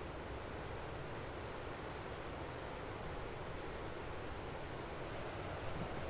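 River rapids rush steadily in the distance.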